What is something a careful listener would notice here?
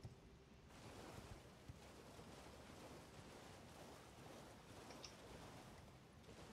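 Hooves splash through shallow water.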